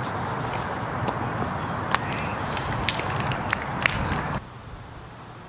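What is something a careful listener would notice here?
Wind blows through trees outdoors.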